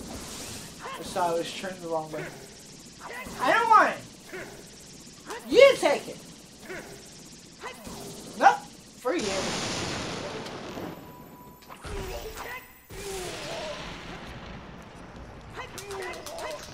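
Sword strikes clash and ring in quick bursts.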